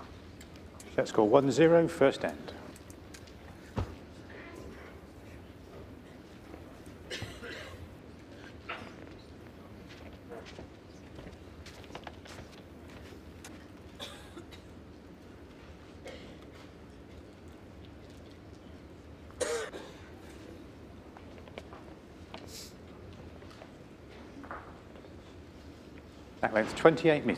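A crowd murmurs quietly in a large indoor hall.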